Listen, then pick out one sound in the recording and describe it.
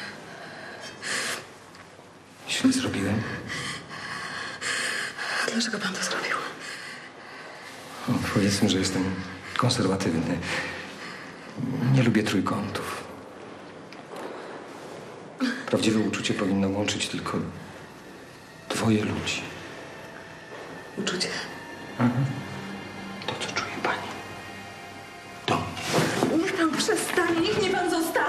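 A woman speaks weakly and tearfully nearby.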